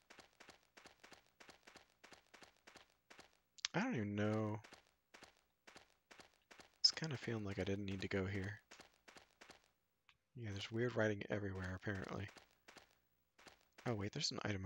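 Footsteps run on a stone path.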